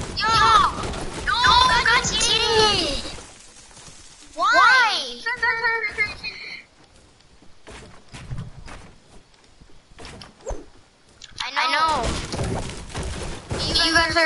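A pickaxe strikes wood with sharp chopping knocks.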